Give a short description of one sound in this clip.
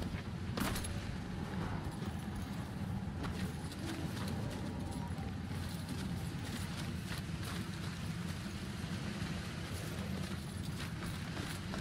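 Footsteps walk over stone.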